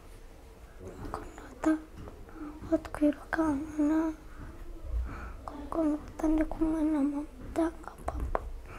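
A boy speaks quietly and haltingly, close by.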